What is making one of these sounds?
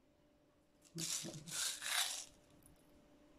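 Sprinkles rattle in a small plastic jar.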